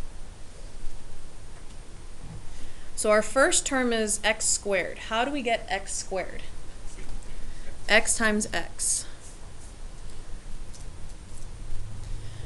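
A marker scratches across paper.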